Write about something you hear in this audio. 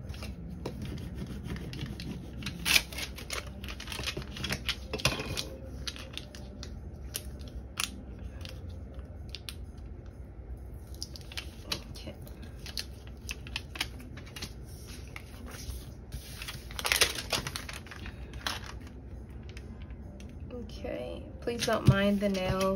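Hands rub and press thin plastic sheets on a table.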